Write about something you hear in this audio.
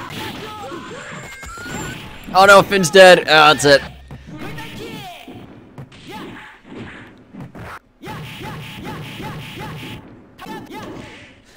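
Punches and kicks land with sharp smacks in quick bursts.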